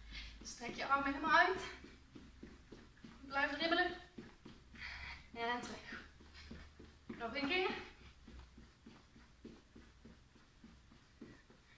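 Feet thump lightly on a hard floor as a woman jumps.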